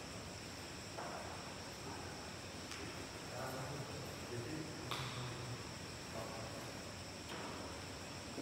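A badminton racket hits a shuttlecock with sharp pops in an echoing hall.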